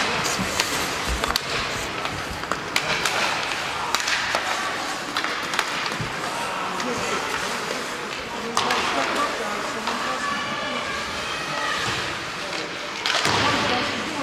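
Ice hockey skates scrape and carve across ice in an echoing rink.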